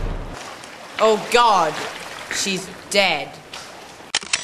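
A teenage boy talks calmly nearby.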